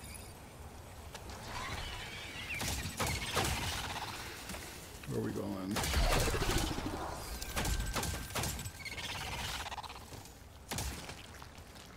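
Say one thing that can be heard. Gunfire crackles in a game.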